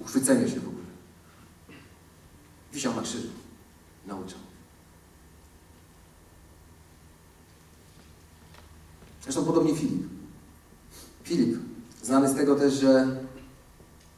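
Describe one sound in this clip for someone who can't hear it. A man speaks through a microphone in short bursts with long pauses, in a large room with reverberation.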